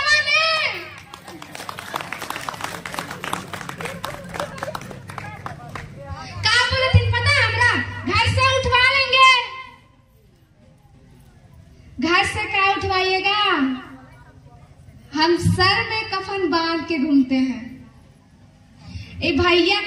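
A young woman sings into a microphone through a loudspeaker.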